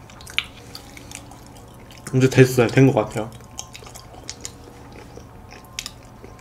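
A young man chews food with soft wet sounds close to a microphone.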